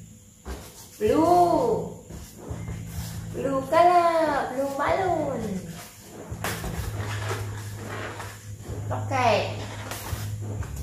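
A rubber balloon squeaks as it is rubbed and twisted.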